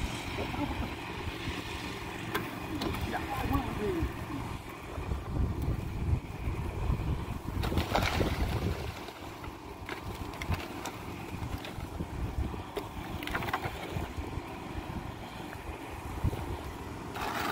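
Wet concrete slides and slops out of a wheelbarrow.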